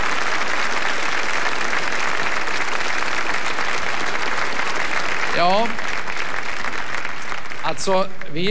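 An audience applauds loudly in a large hall, then the applause fades.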